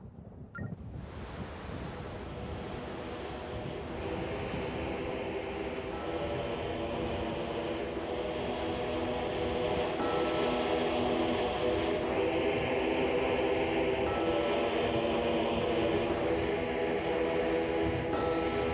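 Stormy sea waves roar and crash.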